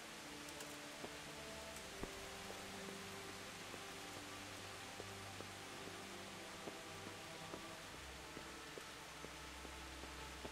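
Footsteps thud on wooden planks of a bridge.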